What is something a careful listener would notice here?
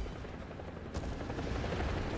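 A shell explodes with a loud blast nearby.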